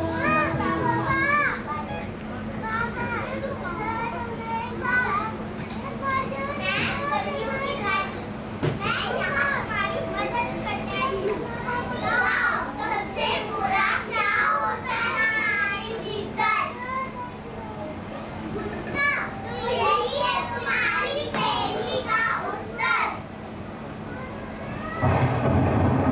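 Young girls sing together.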